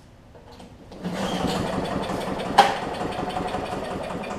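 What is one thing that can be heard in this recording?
A lawn mower engine starts and runs with a steady rattling drone.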